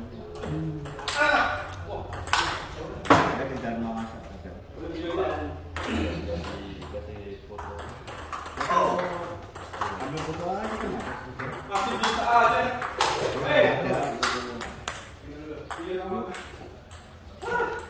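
A ping-pong ball clicks back and forth on a table and paddles.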